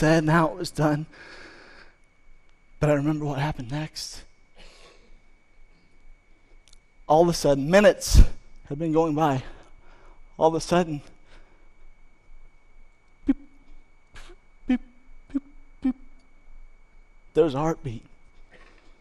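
A man speaks calmly through a headset microphone, with long pauses.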